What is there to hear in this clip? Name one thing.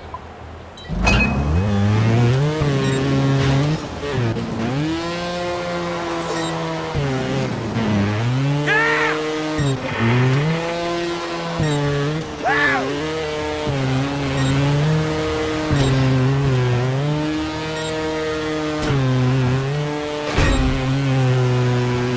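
A motorbike engine revs up and down.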